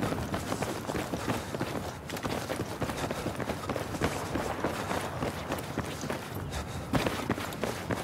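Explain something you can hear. Footsteps run quickly across hard pavement.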